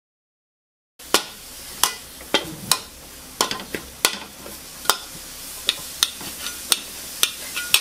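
A metal spatula scrapes and clacks against a wok.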